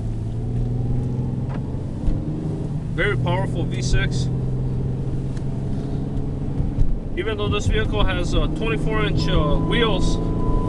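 Tyres roll on a wet road.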